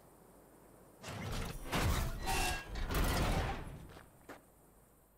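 Heavy metal doors scrape and grind as they are forced open by hand.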